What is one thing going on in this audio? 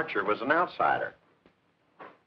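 A man speaks briefly and firmly nearby.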